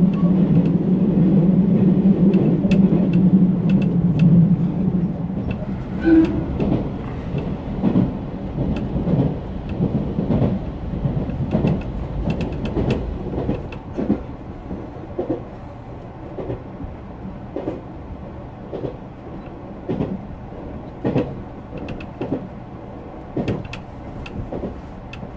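An electric multiple-unit train hums along the rails.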